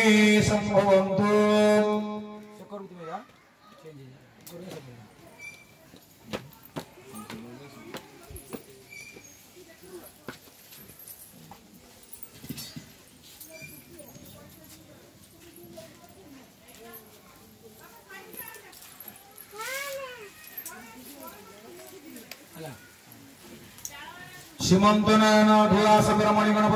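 Adult men and women talk nearby.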